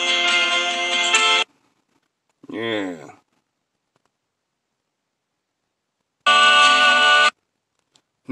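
Music with singing plays in short bursts.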